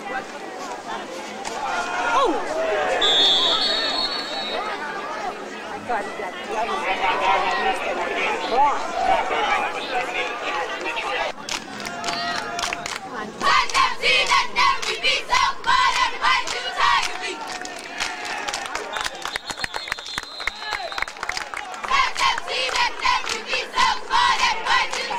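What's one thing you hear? Spectators cheer and shout outdoors, close by and far off.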